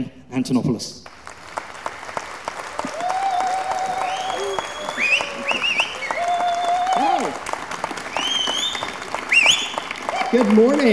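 An audience claps and applauds in a large hall.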